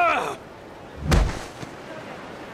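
A stick strikes the sand with a heavy thud.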